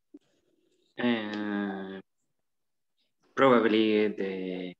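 A man speaks in slow, drawn-out words through an online call.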